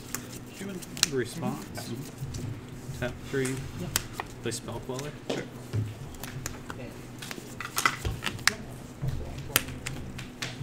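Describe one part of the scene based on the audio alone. Cards slap and tap down on a table.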